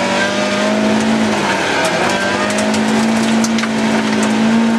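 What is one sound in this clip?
Gravel and stones rattle against the underside of a car.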